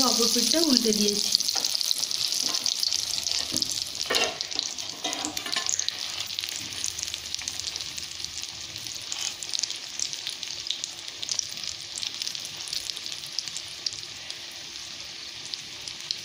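A wooden spatula scrapes and presses on a griddle.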